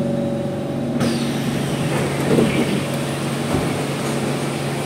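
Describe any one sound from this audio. Train doors open with a hiss.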